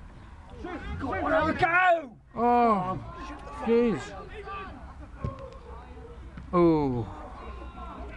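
Men shout loudly across an open outdoor pitch.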